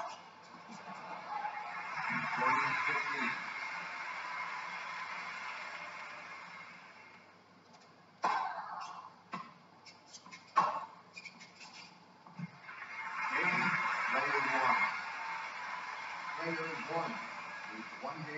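A crowd cheers and applauds, then fades.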